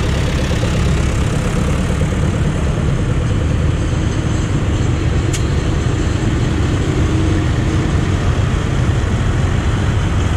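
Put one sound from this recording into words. Tractor engines rumble loudly as tractors drive past.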